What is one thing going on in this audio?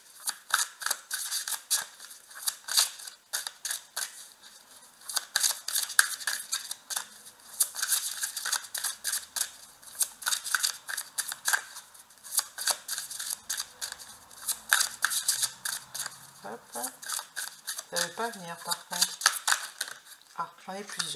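Playing cards riffle and flick crisply as they are shuffled close by.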